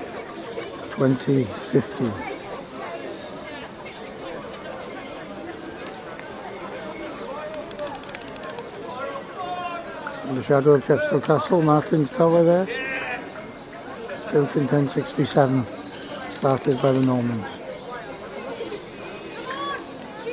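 A large crowd murmurs and chatters in the distance outdoors.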